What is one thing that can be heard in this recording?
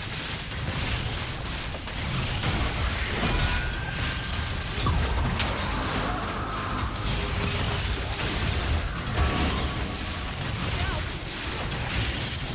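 Spell effects whoosh and crackle in a game fight.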